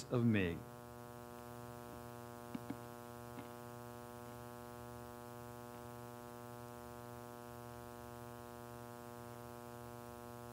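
A keyboard holds a soft, steady chord.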